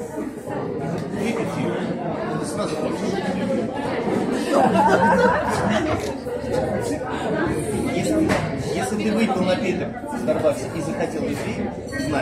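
Several young men and women talk and laugh together close by.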